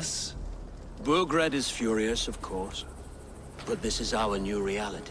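An older man speaks calmly in reply.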